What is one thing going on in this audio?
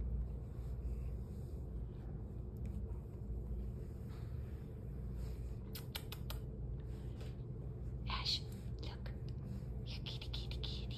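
A cat purrs.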